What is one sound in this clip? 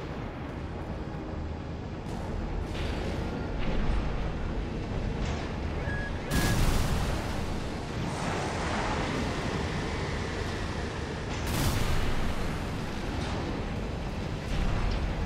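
A heavy engine thrusts with a steady low roar.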